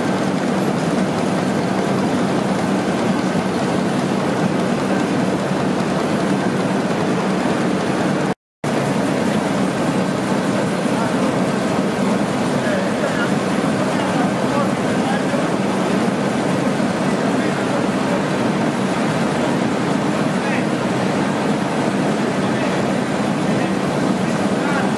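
A winding machine whirs and rattles steadily as spools spin.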